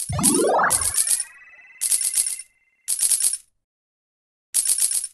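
Video game coins chime in quick, bright bursts as they are collected.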